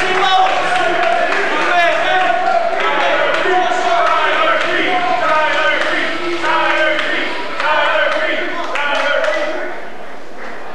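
A young man shouts with animation in a large echoing hall.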